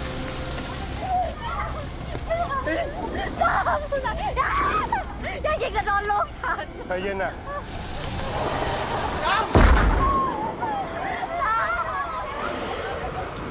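A crowd of men shout angrily.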